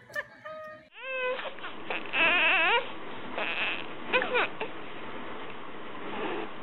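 A baby cries loudly in bursts.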